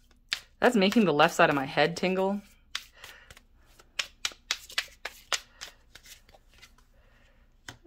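Cards shuffle and flick together in quick dry taps.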